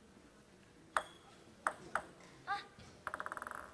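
A table tennis ball bounces a few times on a table before a serve.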